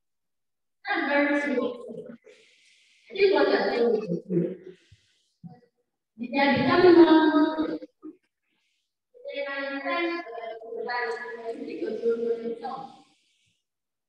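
A young woman speaks into a microphone with pauses.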